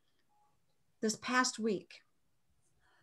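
A woman speaks calmly and briefly into a microphone close by.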